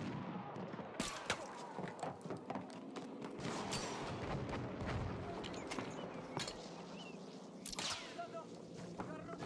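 A bolt-action rifle fires a shot.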